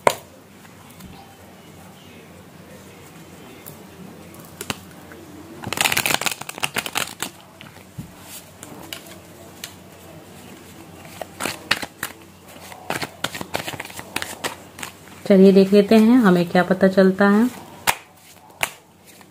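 Cards shuffle and riffle with a crisp rustle.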